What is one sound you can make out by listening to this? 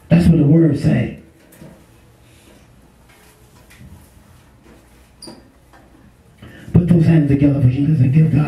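A man speaks loudly into a microphone, heard through a loudspeaker, with pauses between phrases.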